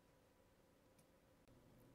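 A metal tool clicks faintly.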